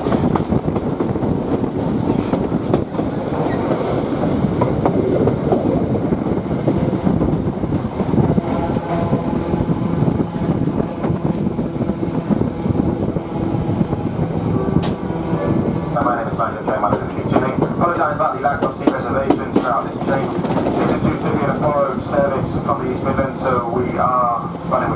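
Wind rushes loudly past an open train window.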